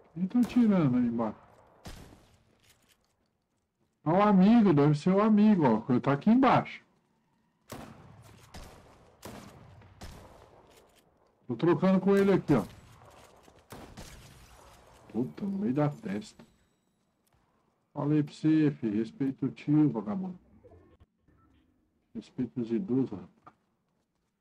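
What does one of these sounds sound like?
A man talks with animation close to a headset microphone, in bursts with pauses.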